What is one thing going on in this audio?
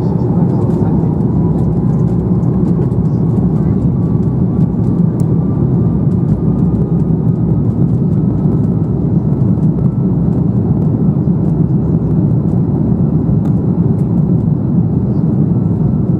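Wheels rumble and thump over a runway.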